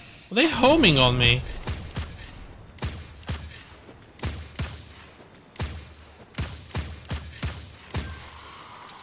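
An automatic rifle fires in quick bursts.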